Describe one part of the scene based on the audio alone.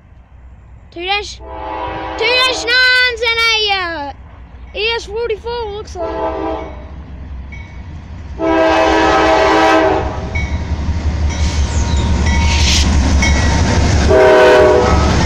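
A train horn blows in long loud blasts, coming closer.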